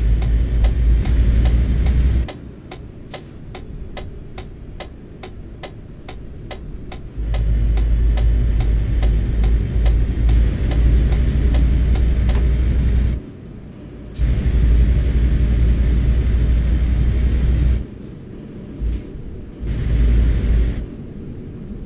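A truck engine rumbles low, swelling louder and dropping back as it drives along.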